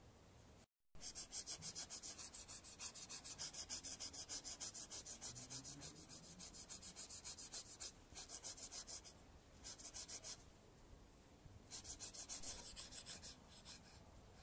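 A knife scrapes rhythmically over charred, crusty skin.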